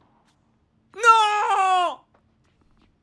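A young man shouts out excitedly close to a microphone.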